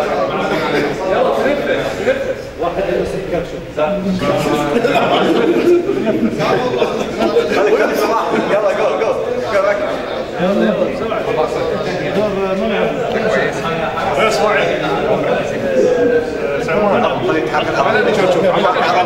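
Several men talk over one another close by.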